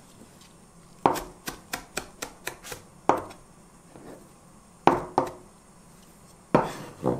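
A knife chops in quick bursts on a plastic cutting board.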